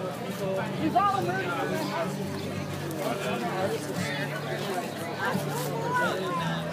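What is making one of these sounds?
A crowd of adults and children chatters nearby outdoors.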